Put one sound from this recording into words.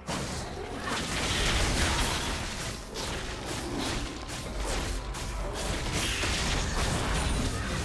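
Fantasy combat effects clash and crackle as characters fight.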